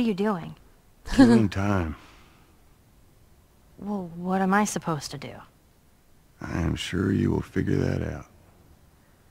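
A man answers in a calm, lazy voice.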